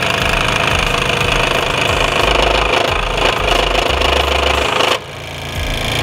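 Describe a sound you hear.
A scroll saw buzzes steadily as it cuts through wood.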